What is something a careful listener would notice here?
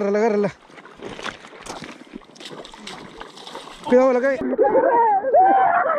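A river's water flows and ripples over stones.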